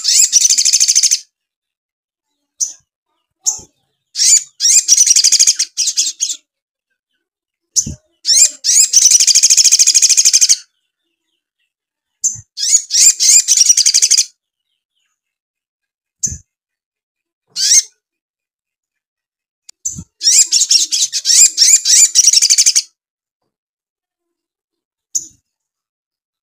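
A small bird sings loud, fast, high chirping bursts close by.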